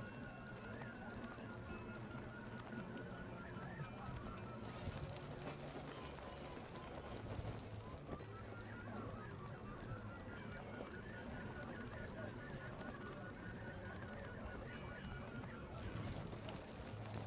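Wind rushes steadily past a gliding paraglider.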